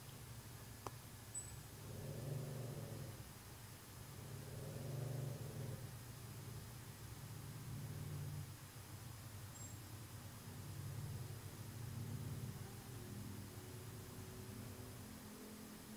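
Plastic panels knock and rattle as they are handled.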